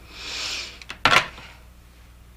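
A telephone handset clunks down onto its cradle.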